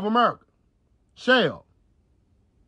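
A man makes two short humming sounds close to a microphone.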